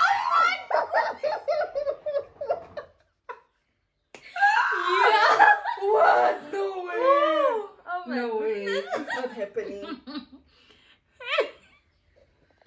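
A second young woman laughs and giggles close by.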